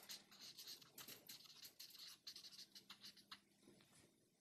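A marker squeaks on paper.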